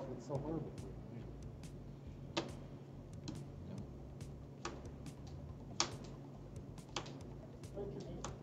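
Cards snap and tap onto a table.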